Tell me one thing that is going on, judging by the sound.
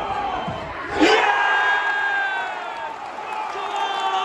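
A stadium crowd roars and cheers loudly.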